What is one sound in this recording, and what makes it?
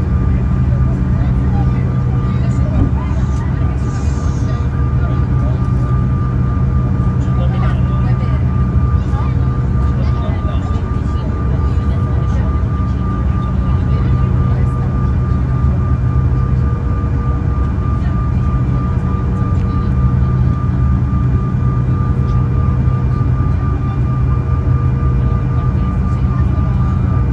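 Jet engines hum and whine steadily, heard from inside an aircraft cabin.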